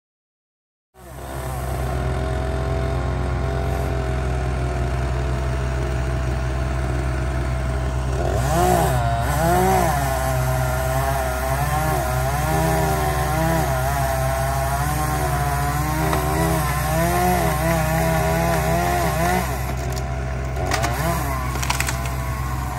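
A diesel bucket truck engine idles.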